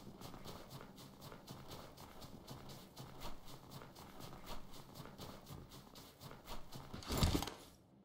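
Quick footsteps crunch through snow.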